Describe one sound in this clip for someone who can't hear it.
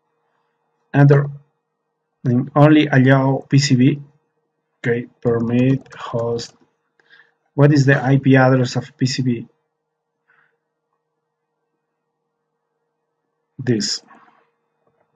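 A man talks calmly into a microphone, with pauses.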